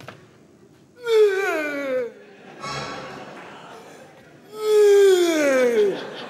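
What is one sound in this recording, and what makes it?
A man cries out in long, loud, falling wails close by.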